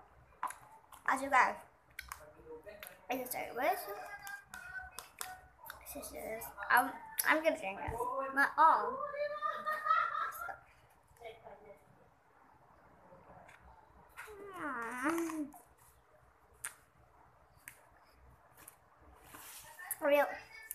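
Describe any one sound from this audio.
A young girl talks playfully close by.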